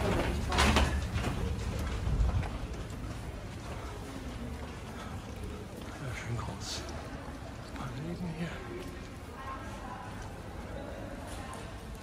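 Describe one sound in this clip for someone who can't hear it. People murmur and walk in a large echoing hall.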